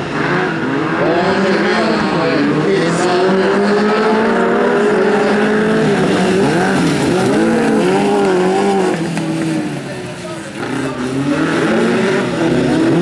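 Several car engines roar and rev loudly as they race past.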